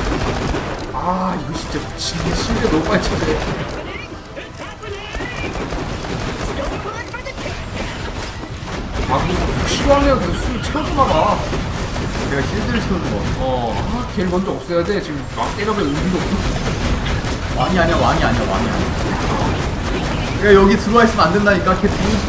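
Two young men talk with animation into microphones.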